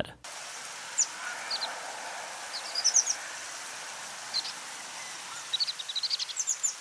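An American pipit gives thin, high call notes.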